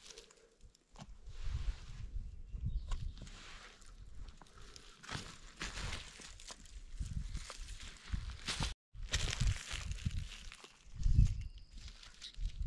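Dry leaves rustle as hands move through them.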